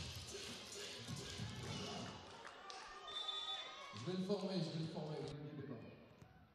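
Young women shout and cheer together.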